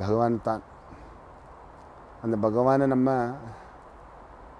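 A man chants in a slow, drawn-out voice close by.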